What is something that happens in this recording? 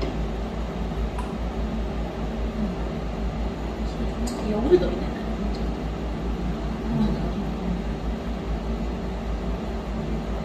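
A woman sips a drink loudly.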